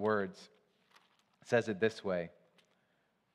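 A man speaks calmly into a microphone, reading aloud.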